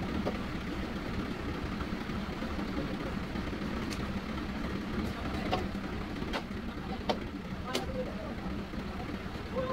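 Heavy wooden beams knock against wooden posts.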